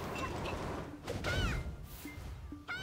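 A fiery blast bursts with a roaring whoosh.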